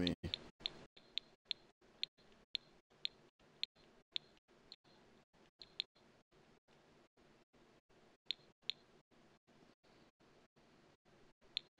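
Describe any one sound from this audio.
Short, soft menu clicks tick now and then.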